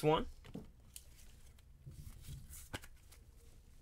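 A card clicks into a hard plastic case.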